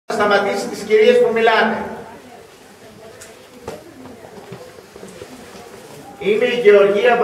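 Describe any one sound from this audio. An elderly man sings a slow chant loudly nearby.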